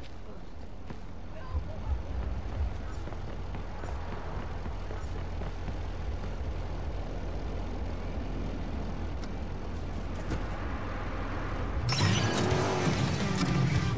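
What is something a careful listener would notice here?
Traffic hums steadily along a street.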